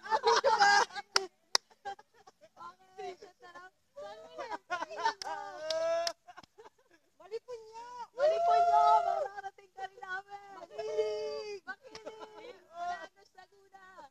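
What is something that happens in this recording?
Young people shout and cheer together outdoors.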